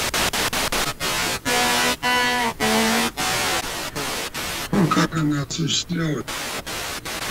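A distorted voice speaks briefly through the radio scanner's speaker.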